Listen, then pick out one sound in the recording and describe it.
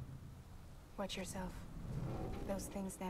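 A woman speaks calmly in a low voice.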